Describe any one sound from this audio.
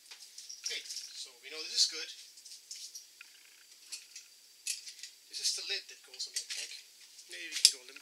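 Small metal parts clink together in a person's hands.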